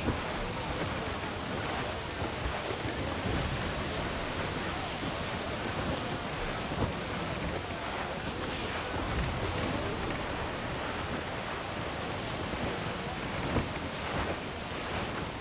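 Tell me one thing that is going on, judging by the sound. Stormy sea waves crash and roar in strong wind.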